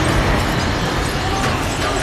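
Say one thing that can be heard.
A man screams in terror.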